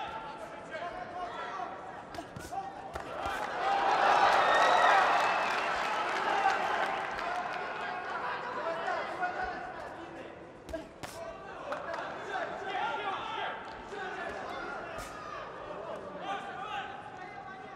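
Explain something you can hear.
Boxing gloves thud against a body and head.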